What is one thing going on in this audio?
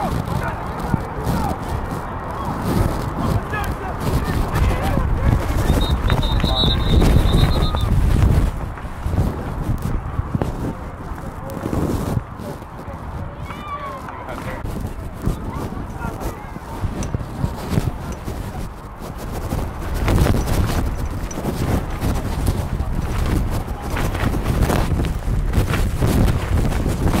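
A crowd of adults and children talks and calls out nearby outdoors.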